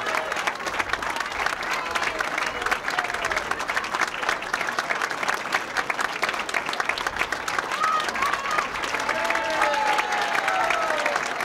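A large crowd applauds loudly and steadily in an echoing hall.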